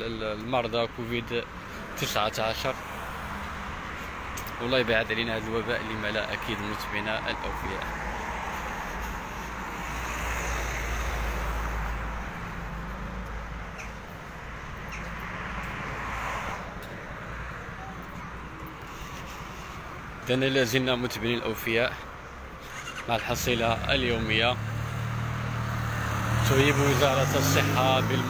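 Traffic hums along a nearby street outdoors.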